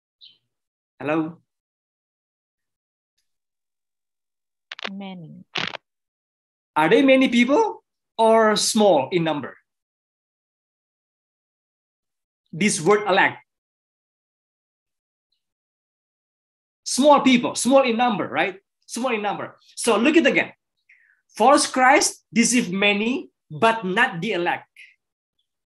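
A man speaks calmly through an online call, in bursts with pauses.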